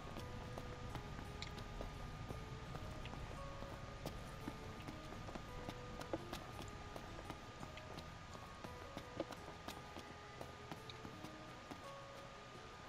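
Footsteps patter quickly on stone paving.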